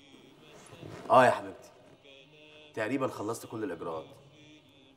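A man speaks into a phone with animation, close by.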